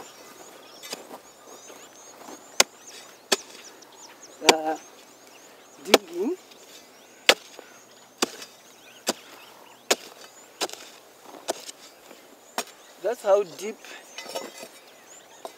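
A hoe chops into dry soil with sharp thuds.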